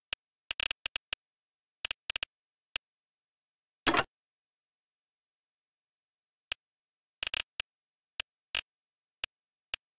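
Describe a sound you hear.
Short electronic clicks sound now and then as menu items are selected.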